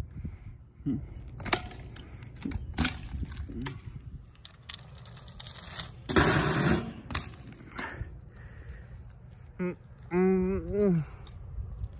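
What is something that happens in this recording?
A bicycle's tyres roll and scrape over pavement.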